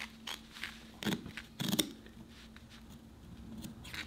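Scissors snip through cloth.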